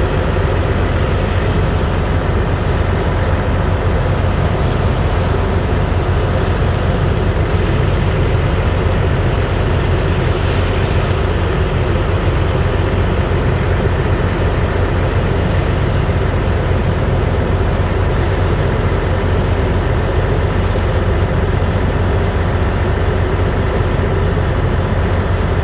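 A water jet from a hose blasts and splashes onto wet sand.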